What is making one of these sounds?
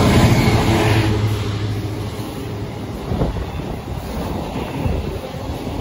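Freight wagons clatter and rumble along the rails.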